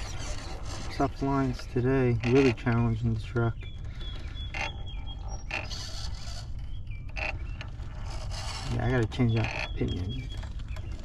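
A small electric motor whines as a toy truck crawls over rock.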